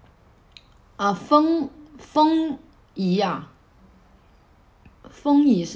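A young woman speaks close to the microphone in short, calm phrases.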